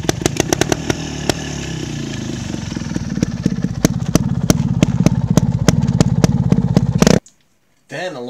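A motorcycle engine revs and sputters close by.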